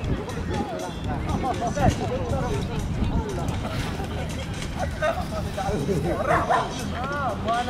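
People nearby chat and call out.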